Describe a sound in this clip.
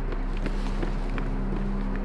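A leather bag rustles as a hand unzips it.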